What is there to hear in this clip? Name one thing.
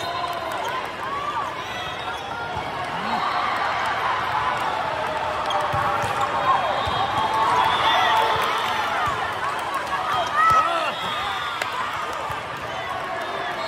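Sneakers squeak on a hard court floor.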